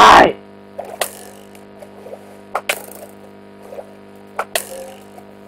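A bow twangs as arrows fly, in short sharp bursts.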